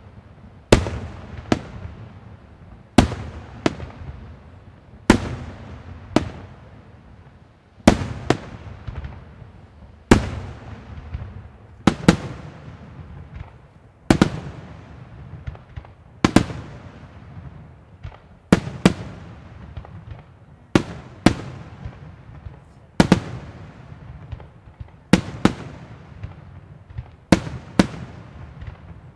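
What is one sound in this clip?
Sparks crackle and fizz after the bursts.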